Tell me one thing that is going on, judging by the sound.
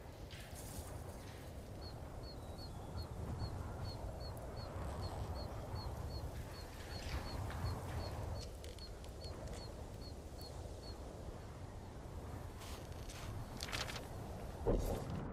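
Wind blows steadily and gusts outdoors.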